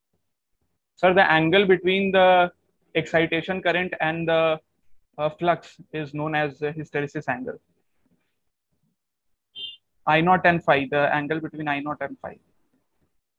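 A young man speaks calmly into a nearby microphone, with pauses.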